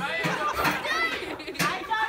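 A young girl laughs loudly close by.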